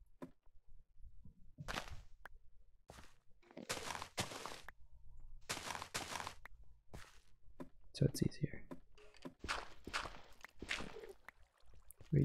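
Blocks crunch and break as they are dug away one after another.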